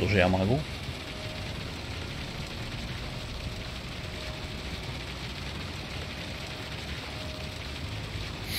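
A concrete pump's engine rumbles steadily.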